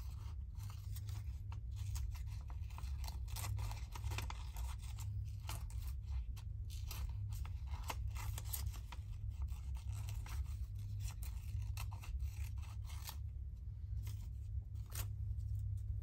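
Paper rustles and tears softly.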